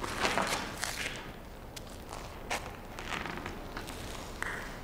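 A man speaks slowly and gravely.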